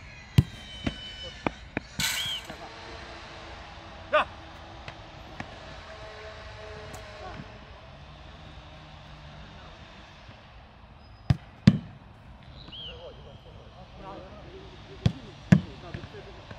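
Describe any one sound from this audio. A football bounces on the ground.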